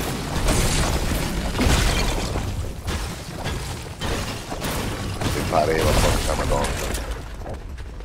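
A pickaxe strikes ice with sharp cracking blows.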